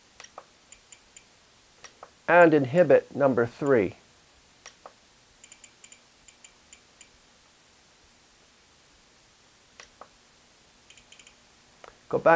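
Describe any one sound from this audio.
A handheld controller gives short, soft beeps.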